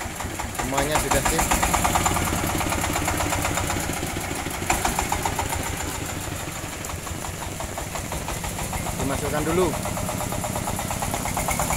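A small diesel engine chugs steadily.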